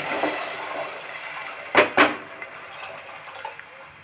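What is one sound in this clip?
A wooden spoon knocks against a pot.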